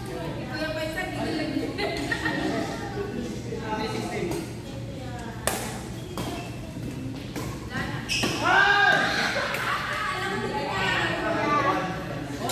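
Young men and women talk and call out to each other, echoing in a large hall.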